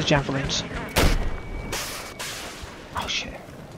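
A missile explodes with a loud boom.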